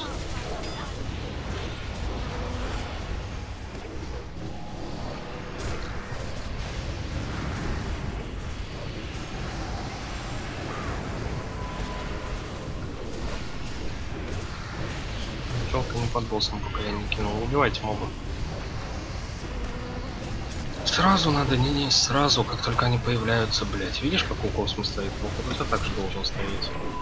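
Game spell effects crackle and whoosh during a battle.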